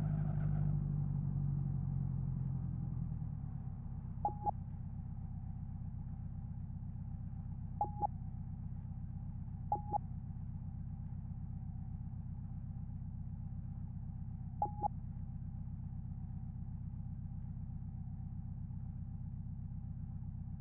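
A car engine idles with a low, steady hum.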